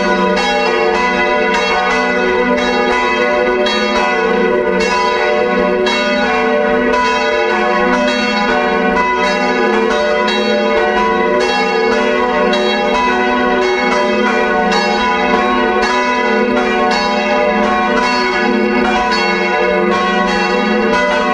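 Large church bells swing and ring loudly in a rapid, overlapping peal that rings on in a resonant space.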